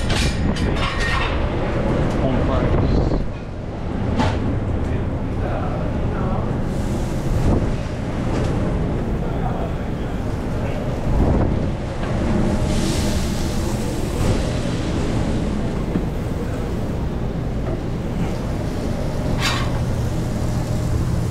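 A kitchen exhaust fan hums steadily.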